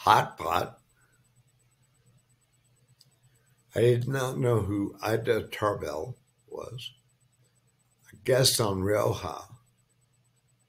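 An elderly man speaks calmly into a microphone in short bursts.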